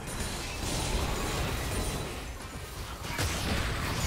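Spell effects whoosh and burst in a computer game battle.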